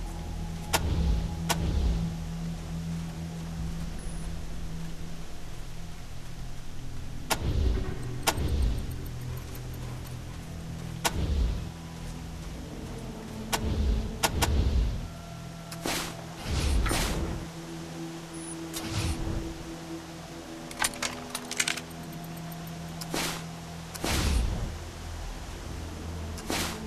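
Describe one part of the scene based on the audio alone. Fire crackles softly in burning barrels.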